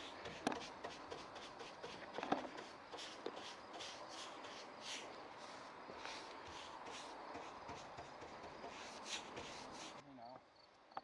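A paintbrush swishes in repeated strokes across wood.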